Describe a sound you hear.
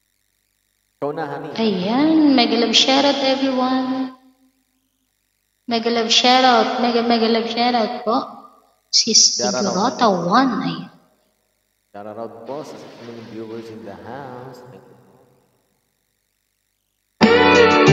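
A woman speaks over an online call, with pauses.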